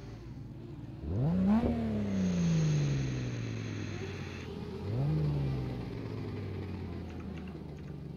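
A car engine revs up sharply and winds down, twice.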